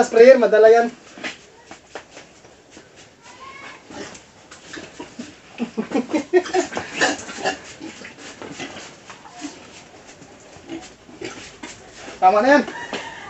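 Pigs grunt and snuffle close by.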